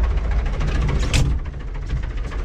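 A metal cab door clunks shut.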